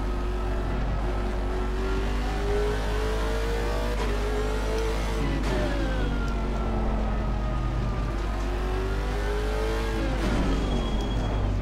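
A racing car engine roars loudly, rising in pitch as it speeds up and dropping sharply at each gear change.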